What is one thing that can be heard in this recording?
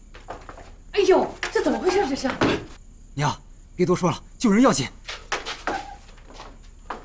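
A middle-aged woman speaks in surprise, close by.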